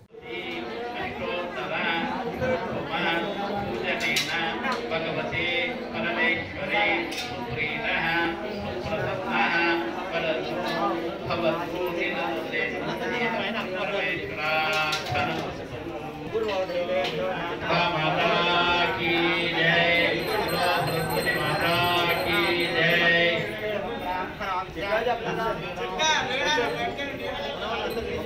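A man chants prayers in a steady, sing-song voice.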